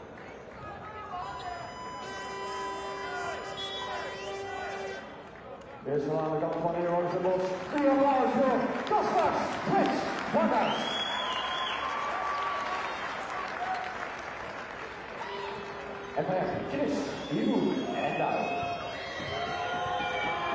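Basketball shoes squeak sharply on the court.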